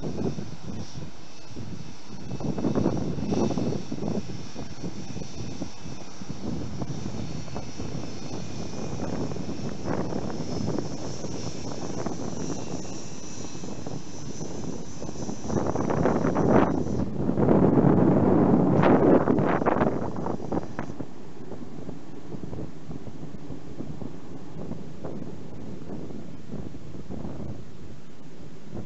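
A jet engine hums and whines steadily as an airliner taxis past nearby.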